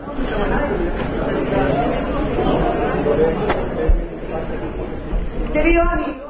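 A large crowd cheers and chants loudly.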